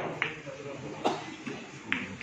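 Pool balls crack apart loudly on a break shot.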